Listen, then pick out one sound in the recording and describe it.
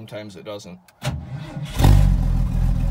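An engine cranks briefly and starts with a roar.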